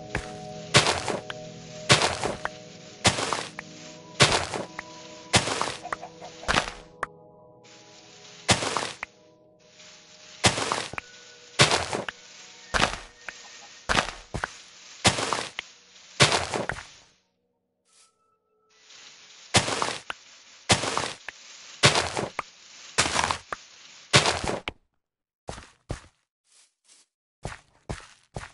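Dirt and gravel crunch in repeated bursts as blocks are dug in a video game.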